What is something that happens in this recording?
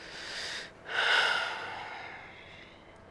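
A woman sighs heavily nearby.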